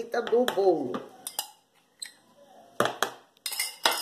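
A spoon taps against a mixing bowl.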